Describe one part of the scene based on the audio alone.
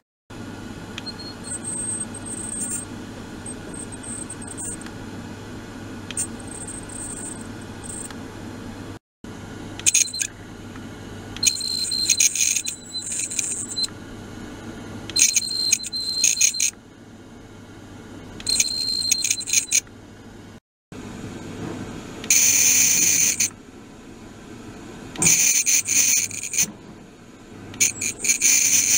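A device buzzes against a metal part in short, rattling bursts.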